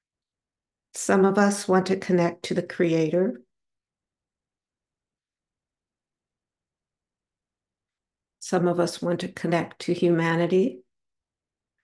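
A woman speaks close to a microphone.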